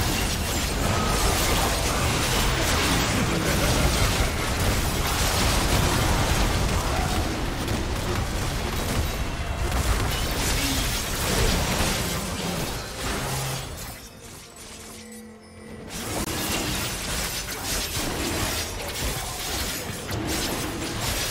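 Magic spells burst and crackle in a busy fight.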